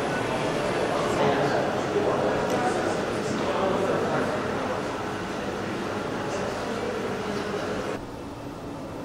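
A crowd of adults murmurs indistinctly in a large indoor hall.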